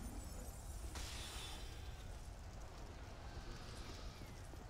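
Magic spells shimmer and whoosh.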